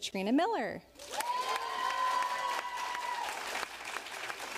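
Audience members cheer and whoop.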